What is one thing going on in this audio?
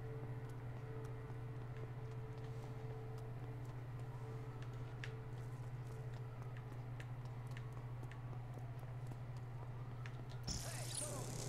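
Footsteps run on hard pavement.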